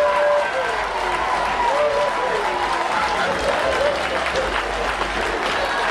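A crowd of spectators cheers loudly outdoors.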